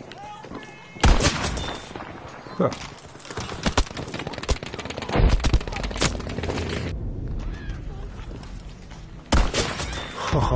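A bolt-action rifle fires sharp shots.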